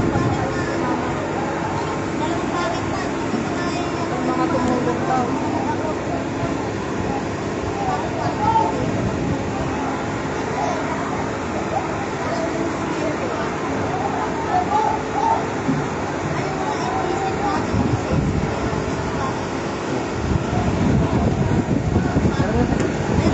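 Wind blows outdoors and buffets the microphone.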